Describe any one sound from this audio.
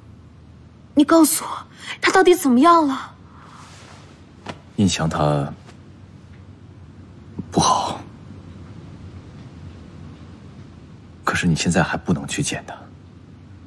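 A young man speaks quietly and firmly, close by.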